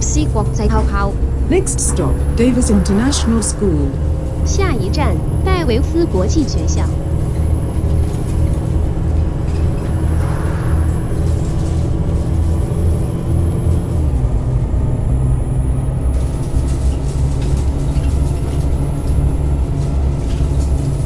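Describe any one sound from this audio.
A bus engine drones steadily at a low pitch as the bus drives along.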